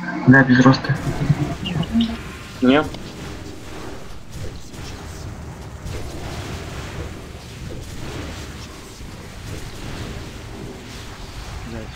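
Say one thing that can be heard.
Spell effects crackle and boom during a fight.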